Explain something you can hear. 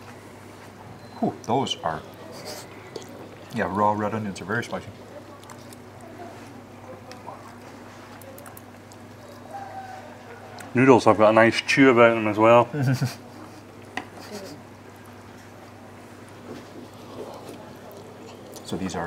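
An older man slurps noodles loudly, close by.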